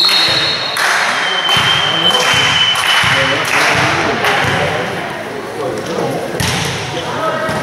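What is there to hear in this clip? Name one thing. Players shout to each other in an echoing hall.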